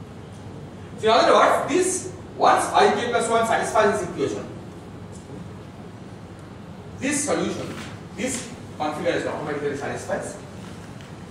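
A man lectures, speaking in bursts with pauses, in a large room.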